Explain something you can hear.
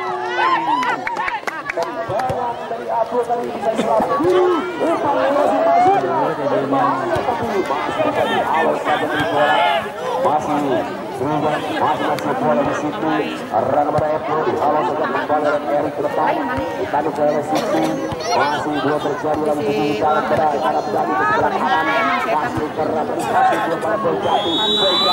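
A large crowd of spectators shouts and cheers loudly outdoors.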